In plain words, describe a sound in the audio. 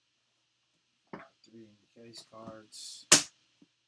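A metal case lid clunks shut.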